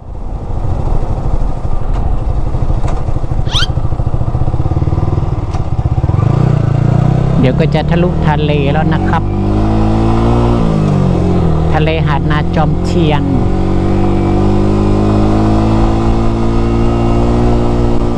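A motorcycle engine hums steadily and rises and falls in pitch as the rider speeds up and slows down.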